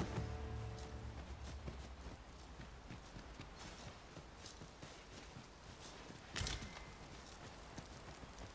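Footsteps tread softly on grass and dirt.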